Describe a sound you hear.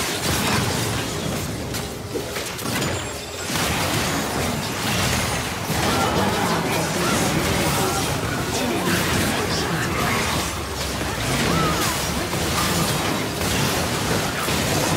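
Game spell effects crackle and blast in rapid bursts.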